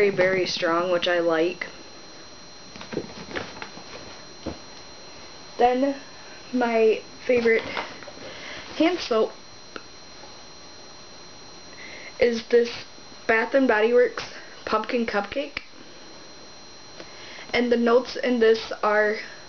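A young woman talks close up, calmly and with pauses.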